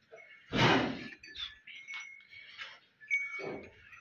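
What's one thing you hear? A horse's tail swishes.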